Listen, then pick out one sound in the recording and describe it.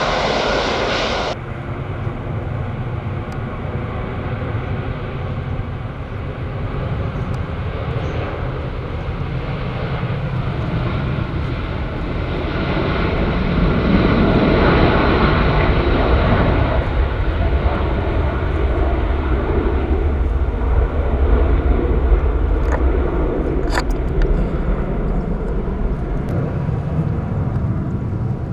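A large jet airliner's engines roar loudly as it speeds down the runway and climbs away.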